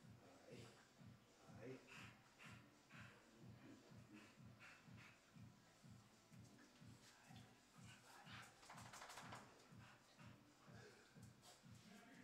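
A dog pants rapidly and steadily, heard through an online call.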